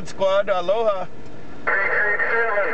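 Radio static hisses briefly between transmissions.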